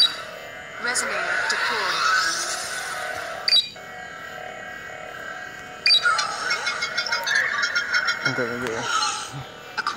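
Electronic game sound effects whoosh and chime.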